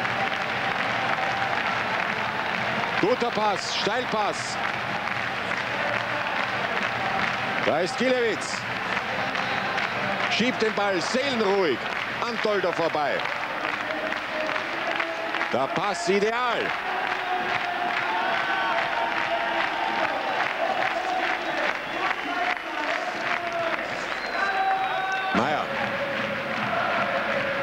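A large stadium crowd roars and cheers loudly outdoors.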